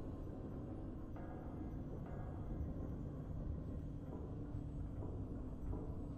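Triumphant game music plays with swelling notes.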